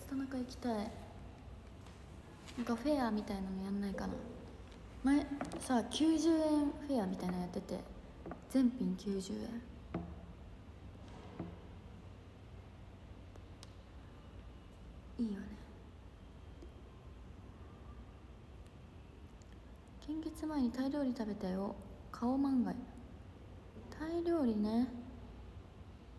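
A young woman talks casually and close to a microphone, in short bursts with pauses.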